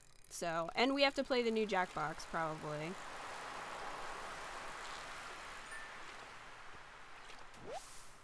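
A fishing reel whirs as a line is reeled in.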